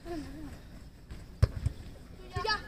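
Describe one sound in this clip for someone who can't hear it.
A football is headed with a dull thump.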